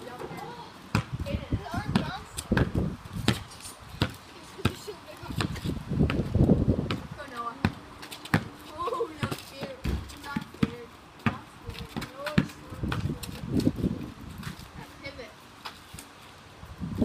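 Young boys talk and call out nearby.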